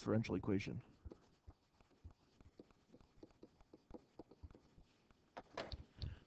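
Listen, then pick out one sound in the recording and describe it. A pen taps and scratches softly on a writing surface.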